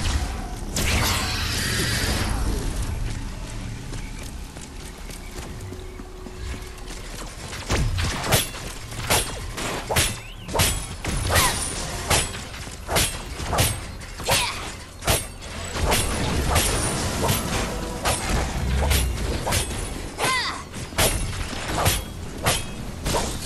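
Magic blasts whoosh and burst.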